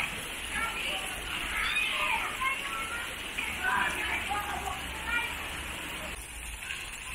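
Water trickles and splashes down a wall.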